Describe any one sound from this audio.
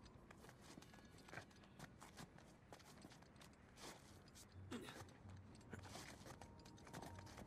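Hands scrape and thud against rock.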